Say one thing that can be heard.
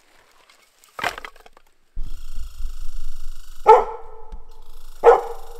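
A dog barks loudly nearby.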